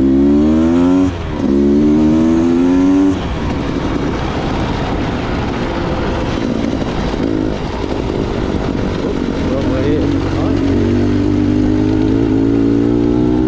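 Tyres crunch and rattle over a rough gravel track.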